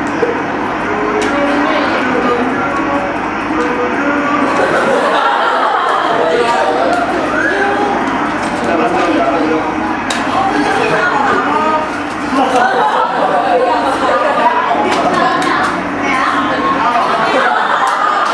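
A boy talks, heard through a loudspeaker in a room.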